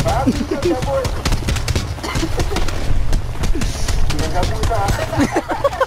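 Fists thud in a brawl, with blows landing in quick succession.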